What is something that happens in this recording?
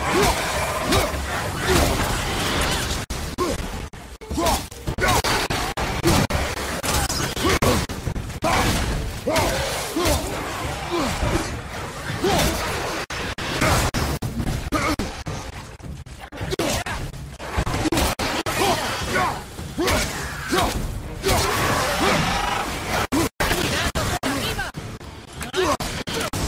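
An axe strikes enemies with heavy thuds and clangs.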